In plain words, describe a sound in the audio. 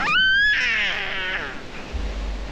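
A baby squeals and giggles happily close by.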